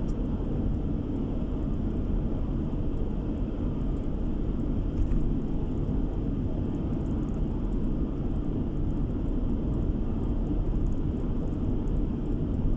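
Tyres roar steadily on a smooth road as a car drives at speed.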